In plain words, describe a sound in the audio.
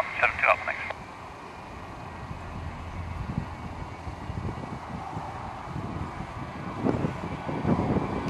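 A jet engine roars, growing louder.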